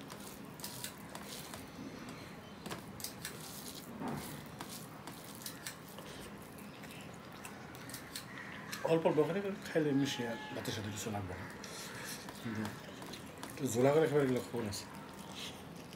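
Fingers squish and mix wet rice on a plate.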